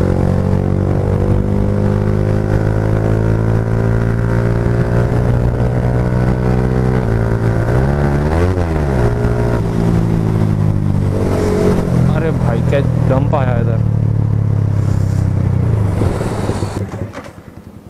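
A motorcycle engine hums steadily and changes pitch as the rider shifts gears.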